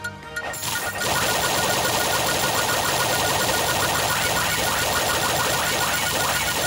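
Rapid rising chimes ring out as a game character levels up.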